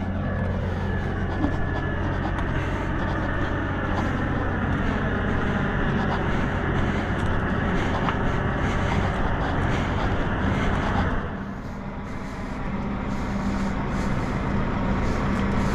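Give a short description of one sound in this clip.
A truck engine idles with a steady, low rumble nearby.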